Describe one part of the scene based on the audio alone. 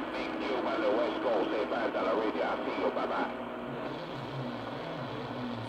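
A radio receiver hisses and crackles with static.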